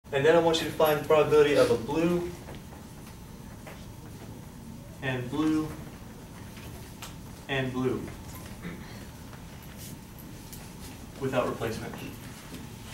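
A man speaks calmly in short phrases, slightly echoing.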